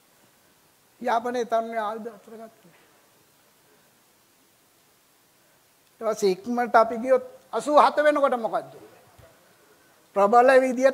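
An elderly man speaks through a microphone in bursts, with pauses between phrases.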